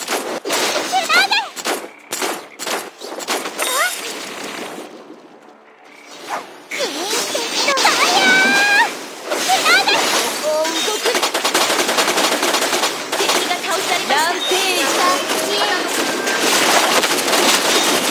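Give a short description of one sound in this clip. Magic blasts, clashing blows and whooshing spells crackle in a hectic battle.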